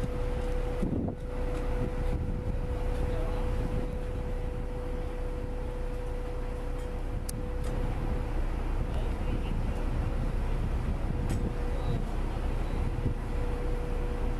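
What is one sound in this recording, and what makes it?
A concrete pump engine drones steadily nearby.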